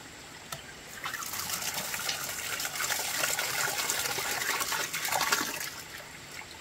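Water pours onto rice in a metal pot.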